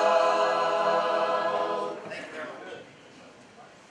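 An elderly man speaks with animation to a group in a room.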